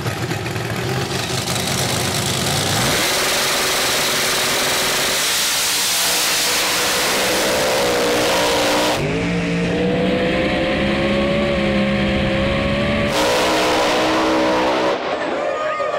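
Powerful race car engines roar loudly and rev up and down.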